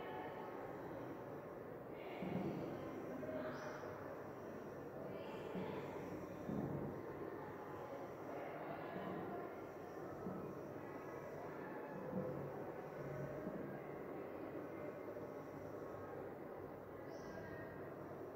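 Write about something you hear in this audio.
A woman talks calmly, explaining as if to a class, in a room with some echo.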